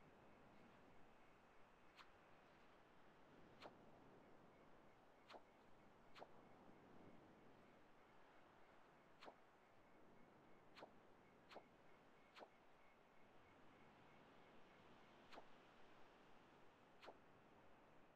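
Soft, faint clicks sound now and then as menu options are picked.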